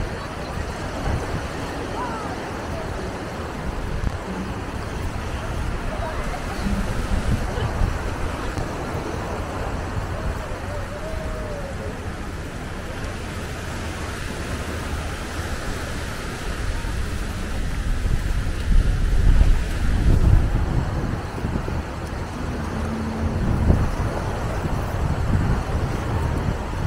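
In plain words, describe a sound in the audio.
Small waves wash gently onto a sandy beach in the distance.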